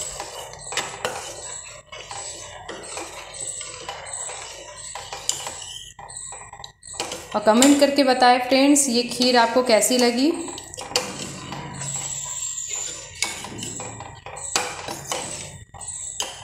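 A metal ladle stirs liquid and scrapes against a metal pot.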